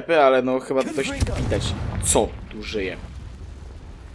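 A fiery spell bursts with a roaring whoosh.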